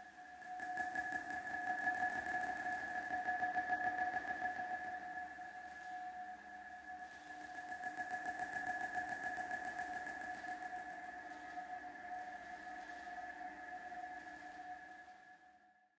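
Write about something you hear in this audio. A machine hums with a steady, high drone.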